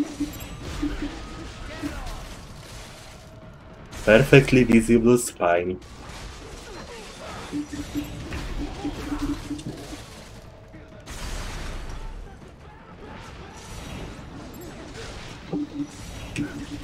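Blades clang and slash in a fast fight.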